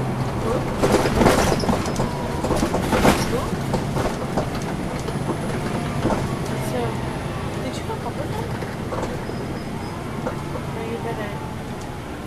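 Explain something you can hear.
The bus body rattles and knocks as it rolls along.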